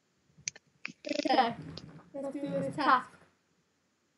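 A young boy talks casually close to a microphone.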